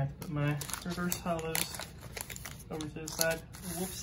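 A foil packet crinkles as hands grip it.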